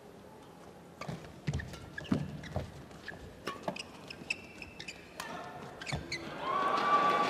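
Rackets strike a shuttlecock in a fast rally.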